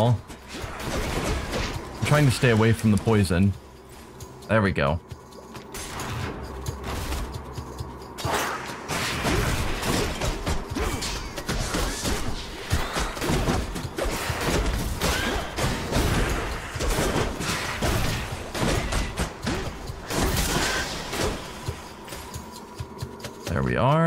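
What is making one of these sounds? Blades slash and strike in a fast, noisy fight.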